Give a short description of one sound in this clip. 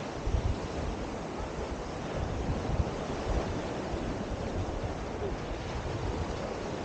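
Waves wash onto a shore nearby.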